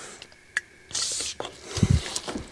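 An aerosol can sprays with a short hiss.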